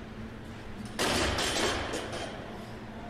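A loaded barbell crashes down onto a rubber gym floor.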